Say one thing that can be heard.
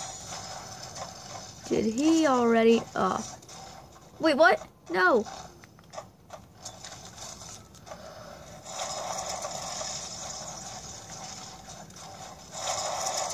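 Video game sounds play from a small tinny speaker.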